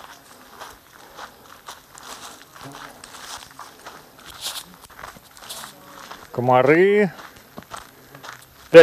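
Footsteps crunch steadily along a dirt path.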